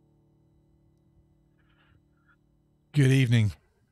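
A keyboard plays a soft sustained chord.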